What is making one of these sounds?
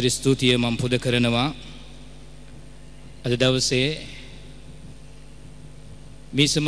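A middle-aged man speaks slowly and calmly into a microphone, with long pauses.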